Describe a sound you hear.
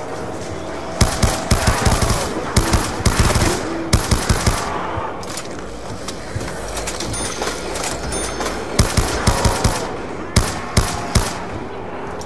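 Automatic gunfire from a video game rattles in rapid bursts.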